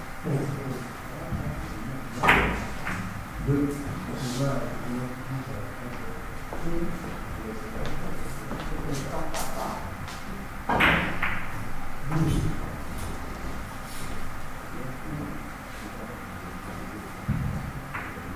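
A cue tip taps a billiard ball.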